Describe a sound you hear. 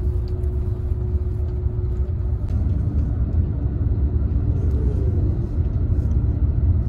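A bus engine hums with a steady low rumble inside the cabin.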